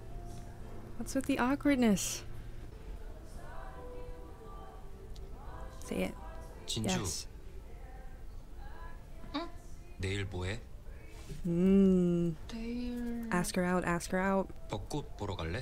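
A young woman talks and laughs close to a microphone with animation.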